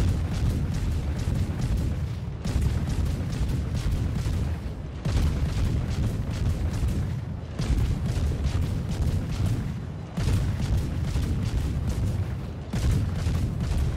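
Shells explode with deep rumbling blasts.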